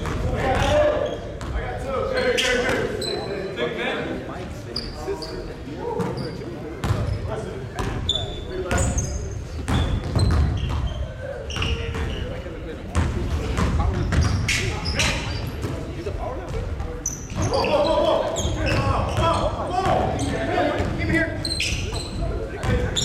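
Young men shout and call out across the court.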